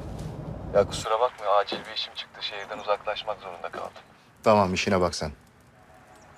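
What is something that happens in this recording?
An elderly man speaks on a phone in a low, stern voice.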